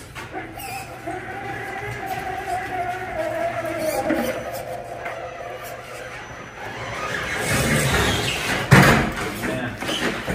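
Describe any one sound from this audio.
A small electric motor whines as a toy truck drives.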